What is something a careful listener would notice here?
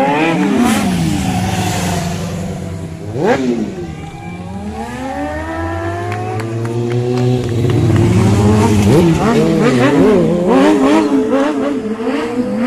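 Motorcycle engines rev and whine loudly as they speed past close by.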